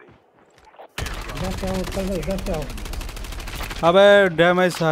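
An automatic gun fires a rapid burst.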